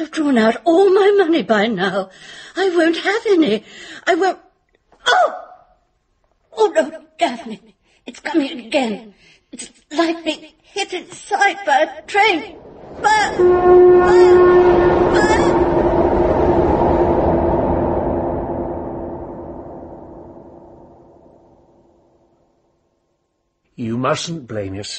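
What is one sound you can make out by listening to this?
A woman speaks calmly and clearly, as if reading out.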